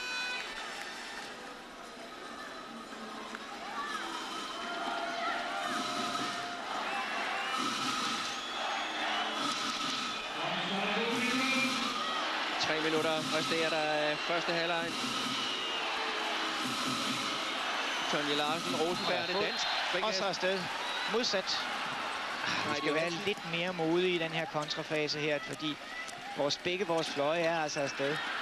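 A large crowd cheers and chants in a big echoing hall.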